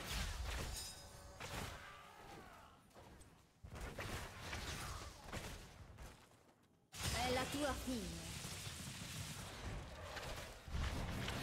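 Fantasy battle effects clash and blast in a busy fight.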